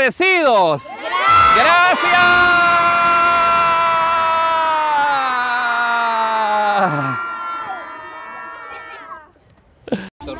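A crowd of children cheers and shouts together, then fades.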